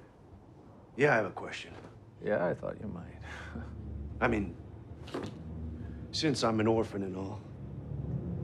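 A middle-aged man speaks in a low, earnest voice.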